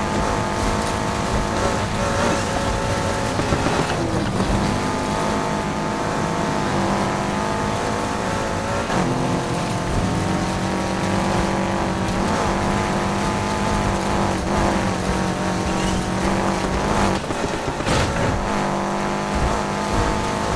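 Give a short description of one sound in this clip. A car engine roars loudly, revving up and down through gear changes.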